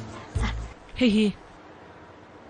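A young girl speaks in a high voice.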